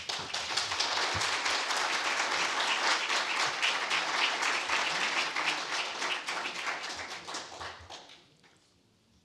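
An audience applauds in a large hall.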